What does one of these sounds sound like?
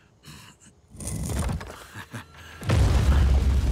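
A heavy stone block scrapes as it is pushed.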